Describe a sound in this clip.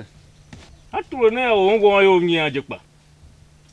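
A second man speaks calmly, close by.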